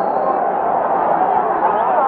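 A man shouts angrily up close.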